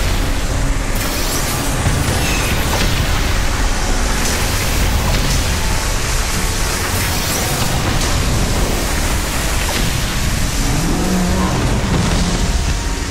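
Electric weapon fire crackles and buzzes in bursts.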